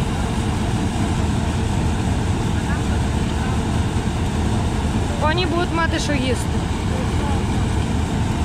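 A combine harvester engine rumbles and clatters steadily close by.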